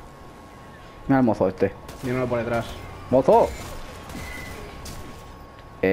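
A gun fires several quick shots.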